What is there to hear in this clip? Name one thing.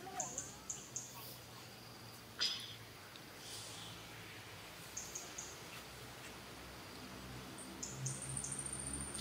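Dry leaves rustle and crackle as a baby monkey crawls over them.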